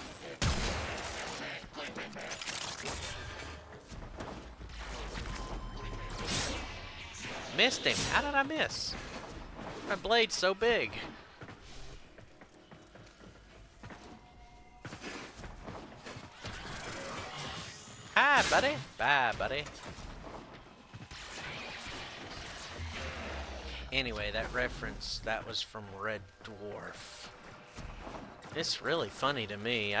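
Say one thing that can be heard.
A heavy blade whooshes through the air in quick slashes.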